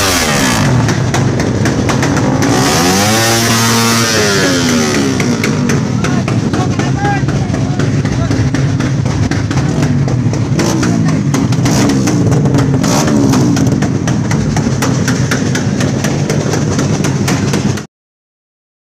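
A motorcycle engine revs hard up and down close by.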